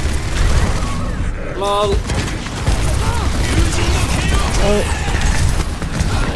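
Explosions boom and thud.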